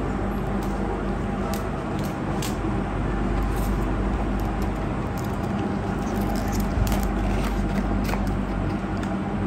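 Cardboard boxes rustle and scrape as they are handled.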